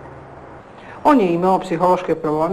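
A middle-aged woman speaks with animation nearby.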